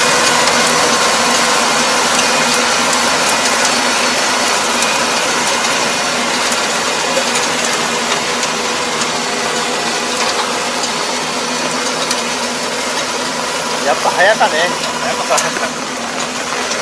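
A tractor engine drones steadily nearby and slowly grows quieter as it moves away.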